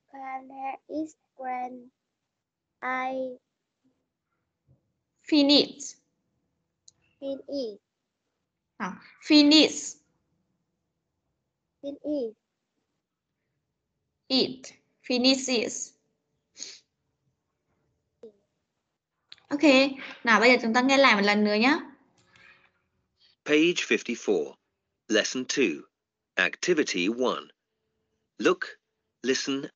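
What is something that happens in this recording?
A woman speaks clearly and slowly over an online call, in short phrases with pauses.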